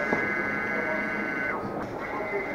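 A printer hums and whirs steadily.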